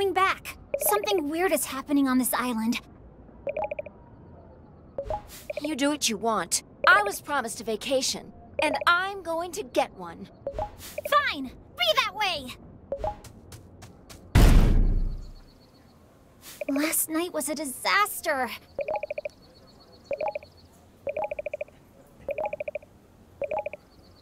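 Short electronic beeps chirp in quick bursts.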